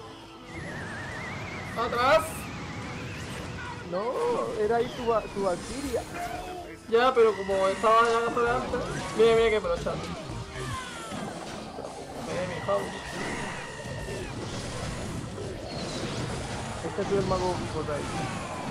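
Video game sound effects clash and chime.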